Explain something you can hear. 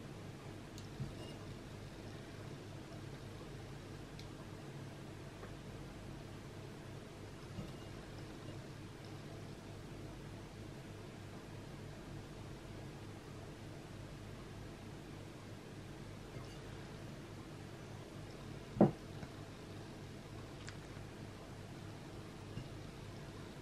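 Fingers pick small pieces from a ceramic bowl with faint clicks.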